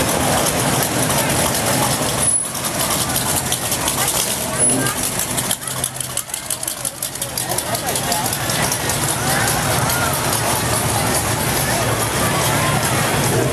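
Old car engines rumble and idle as cars roll slowly past.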